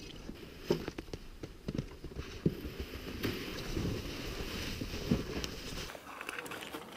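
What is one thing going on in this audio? Boots crunch on snow.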